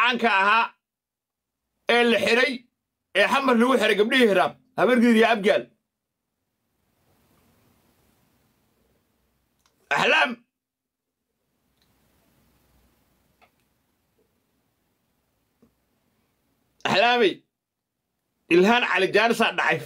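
A man speaks with animation close to a microphone, with pauses.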